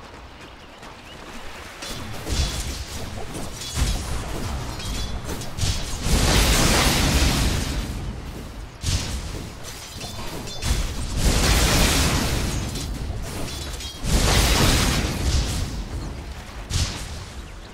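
Spells and weapons clash with bursts and crackles in a fast battle.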